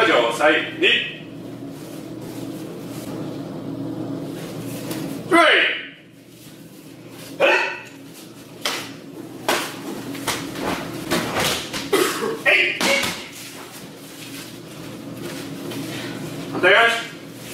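Young adults shout sharp cries in an echoing room.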